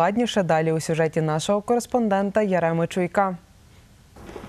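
A young woman speaks calmly and clearly into a microphone.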